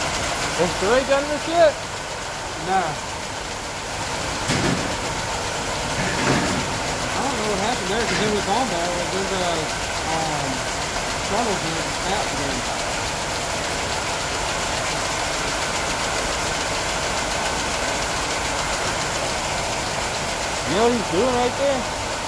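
Machinery hums steadily throughout.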